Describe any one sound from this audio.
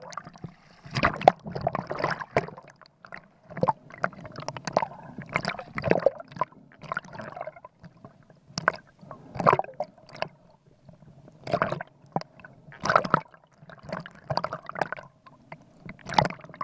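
Water gurgles and bubbles underwater, muffled.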